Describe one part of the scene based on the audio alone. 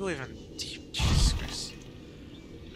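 Bubbles rush and gurgle underwater.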